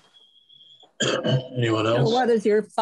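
A second man speaks over an online call.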